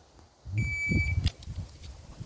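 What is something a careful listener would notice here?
A timer beeps once with a high tone.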